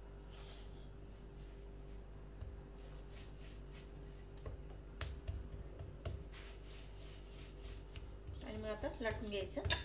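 Hands pat soft dough on a wooden board.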